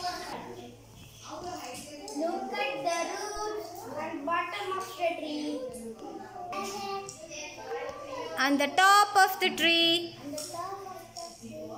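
A girl recites aloud.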